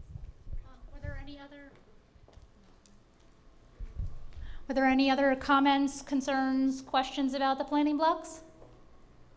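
A woman speaks through a microphone in a room.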